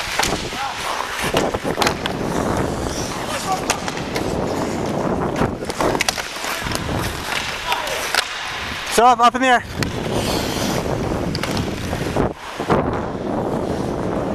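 Skate blades scrape and hiss across ice close by.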